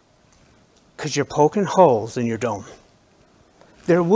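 A middle-aged man speaks into a microphone, pausing between phrases.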